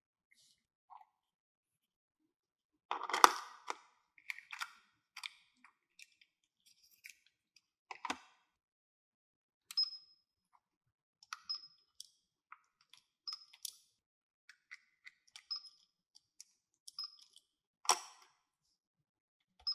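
Plastic toy pieces clatter and click against each other.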